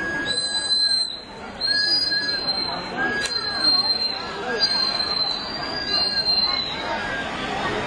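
A crowd of people chatters nearby outdoors.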